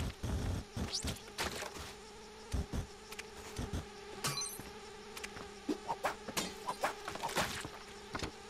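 Short game sound effects blip and pop as a character jumps and attacks.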